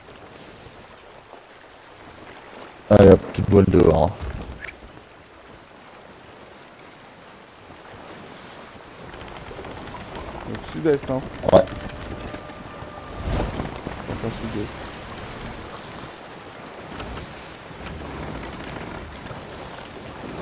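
Waves wash and splash against a ship's hull.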